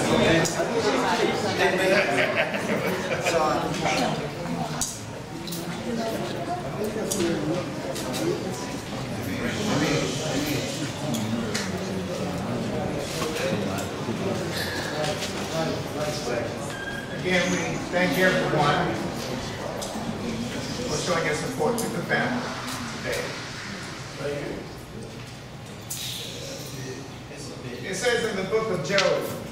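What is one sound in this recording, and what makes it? A man speaks solemnly into a microphone, heard through loudspeakers in an echoing room.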